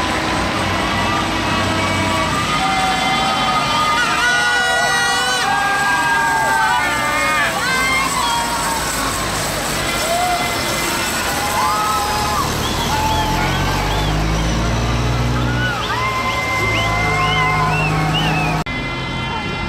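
A crowd of young people on a truck cheers and shouts.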